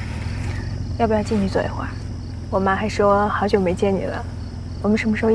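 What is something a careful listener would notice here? A young woman speaks softly nearby.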